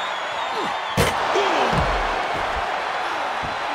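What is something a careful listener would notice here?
A body slams hard to the floor with a heavy thud.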